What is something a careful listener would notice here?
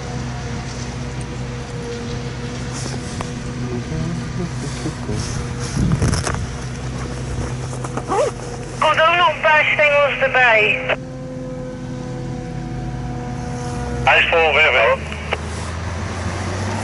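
A forage harvester engine drones steadily nearby.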